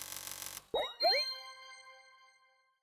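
A bright electronic chime rings out and slowly fades.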